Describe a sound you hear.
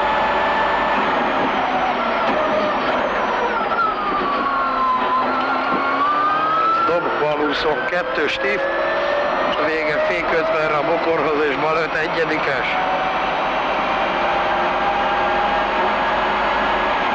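A car engine roars and revs up and down as the car speeds along.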